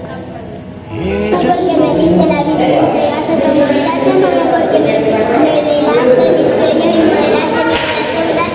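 A young girl recites aloud, close by.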